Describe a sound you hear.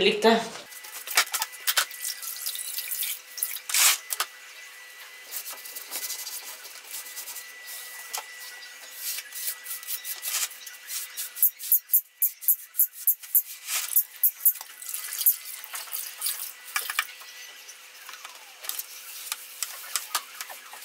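Water splashes and sloshes in a plastic bucket as cloth is washed by hand.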